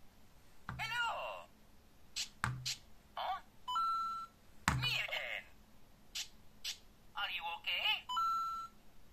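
A small electronic toy plays short, chirpy cartoon voice sounds through a tiny speaker.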